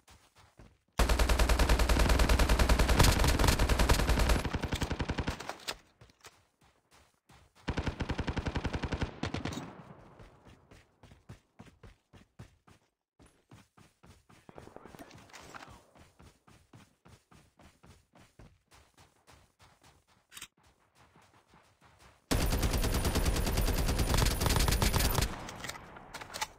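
A rapid-fire gun shoots in long, loud bursts.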